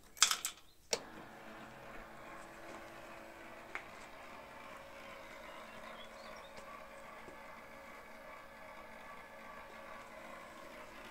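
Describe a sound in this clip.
A small engine starts up and then idles steadily.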